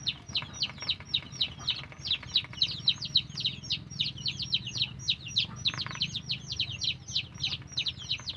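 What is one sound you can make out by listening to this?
Ducks dabble and slurp noisily in a bowl of wet feed.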